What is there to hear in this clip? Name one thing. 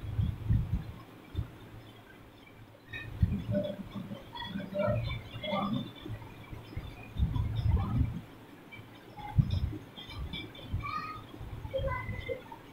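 A marker squeaks on a whiteboard in short strokes.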